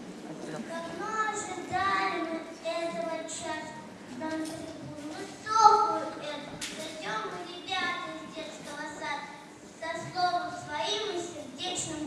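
A young girl sings into a microphone.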